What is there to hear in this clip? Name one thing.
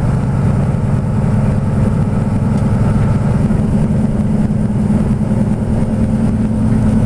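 A car's engine hums and its tyres roar steadily on the road, heard from inside.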